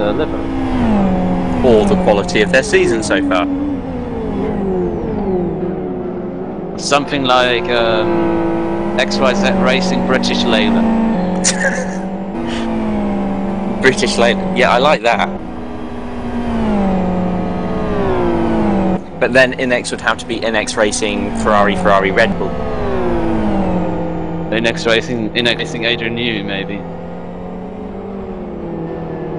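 A racing car engine roars, rising and falling in pitch as it shifts gears.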